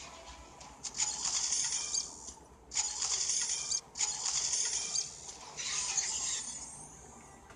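Metal clangs and crashes as robots fight.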